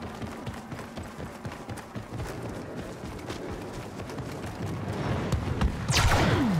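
Heavy footsteps thud quickly on the ground.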